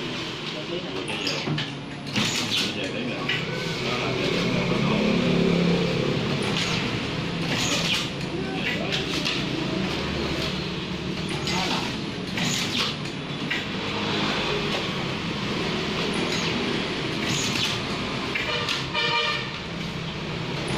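A machine's motor hums steadily.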